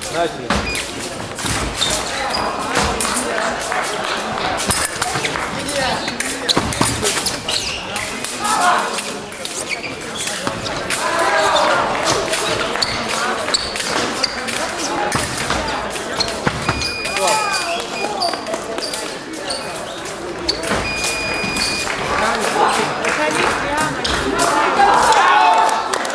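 Footsteps thud and squeak on the fencing strip.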